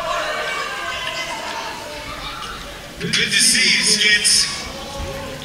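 A man shouts loudly into a microphone over a loudspeaker in an echoing hall.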